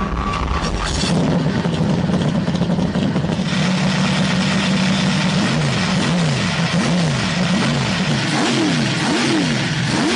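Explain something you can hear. A powerful car engine rumbles loudly and steadily.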